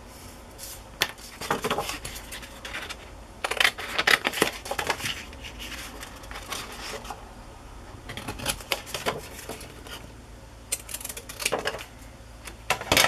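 Stiff cardboard rustles and flexes as it is handled.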